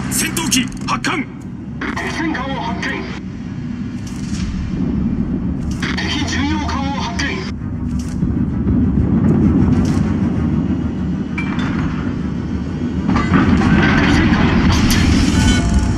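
A deep engine rumble drones steadily.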